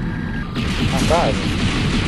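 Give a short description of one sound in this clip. A laser blaster fires a shot.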